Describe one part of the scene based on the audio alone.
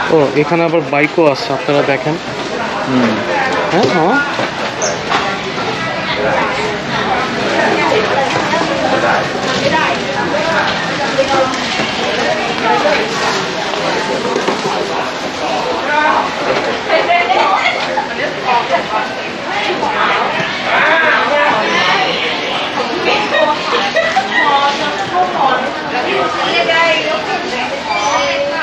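Shoppers chatter nearby in a busy indoor space.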